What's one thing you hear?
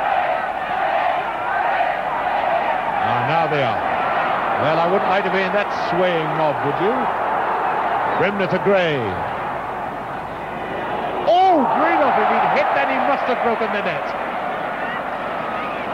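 A large crowd roars and chants loudly in an open stadium.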